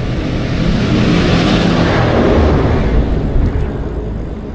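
A tractor engine rumbles nearby as it passes.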